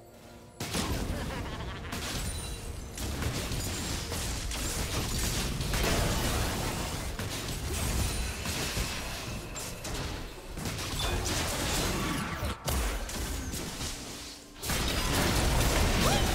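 Magic spells and weapon strikes crackle and burst in a fast game battle.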